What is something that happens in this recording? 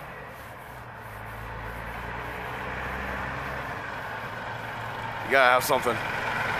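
A large truck approaches along the road with a low engine rumble.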